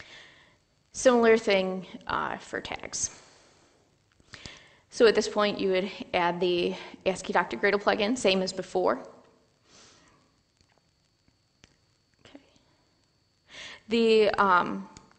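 A woman speaks steadily through a microphone, with pauses, in a large room.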